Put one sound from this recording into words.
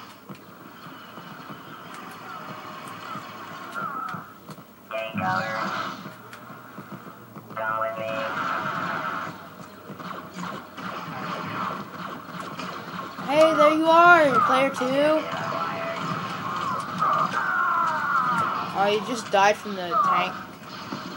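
Video game sound effects and beeps play from a television speaker.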